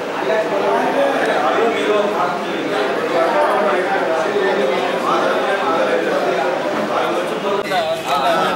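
Several women and men talk over one another.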